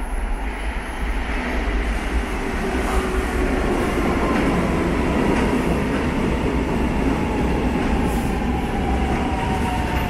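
A subway train roars into an echoing underground station.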